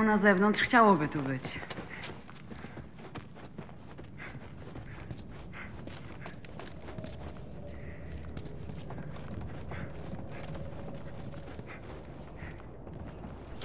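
Footsteps crunch over debris and creaking floorboards.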